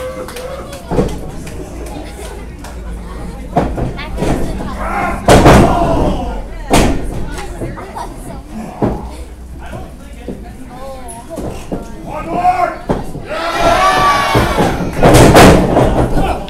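Bodies slam onto a wrestling ring mat with loud thuds.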